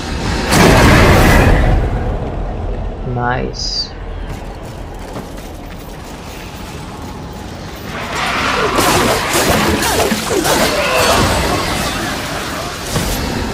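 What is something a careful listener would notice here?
Blades slash and clang in a fight.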